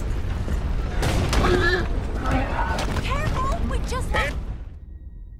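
A man calls out with animation nearby.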